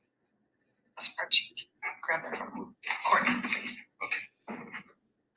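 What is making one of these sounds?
A woman speaks firmly over an online call.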